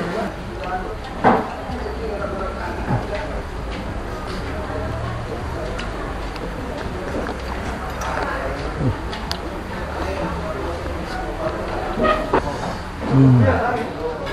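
A man eats, chewing and slurping food.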